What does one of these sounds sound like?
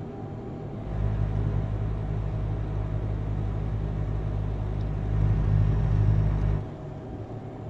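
A truck engine hums low and steady as it drives.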